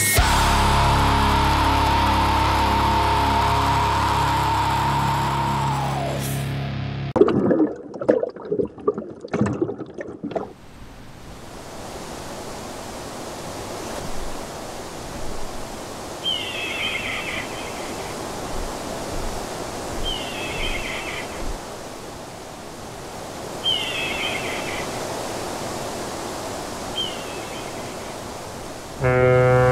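Ocean waves crash and churn.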